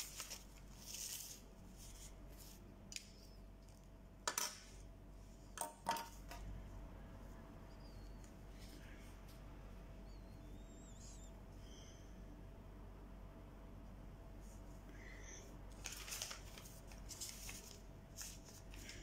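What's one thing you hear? Paper rustles and crinkles close by.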